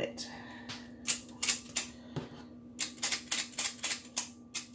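A metal scoop's lever clicks repeatedly.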